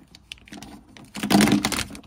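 Plastic sheeting crackles and rips as it is peeled away.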